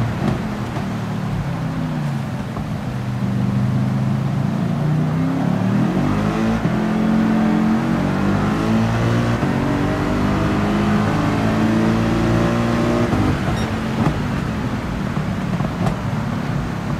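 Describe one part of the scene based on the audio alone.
A racing car engine roars and shifts through gears.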